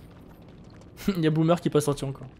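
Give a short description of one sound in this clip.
A young man speaks loudly with animation into a close microphone.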